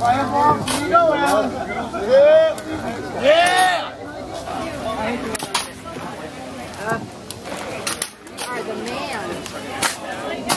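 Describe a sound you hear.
A crowd of men and women chatters outdoors.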